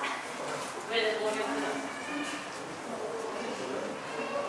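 People talk nearby in a large echoing hall.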